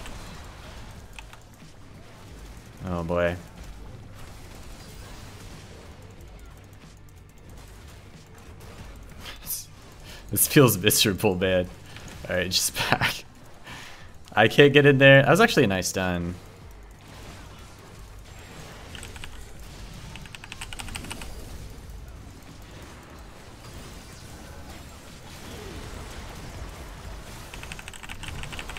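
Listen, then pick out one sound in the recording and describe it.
Game spell effects whoosh and crackle.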